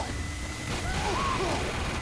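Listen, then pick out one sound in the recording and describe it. A heavy rotary gun fires in a rapid burst.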